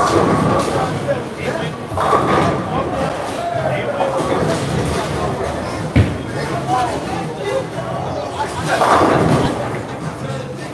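Several people chat nearby in a large, echoing hall.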